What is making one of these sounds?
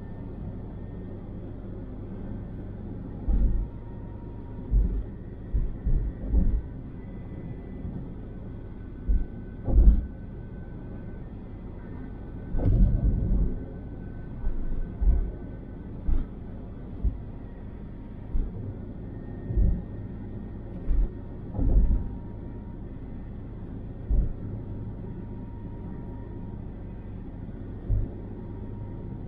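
Tyres roll on a smooth highway.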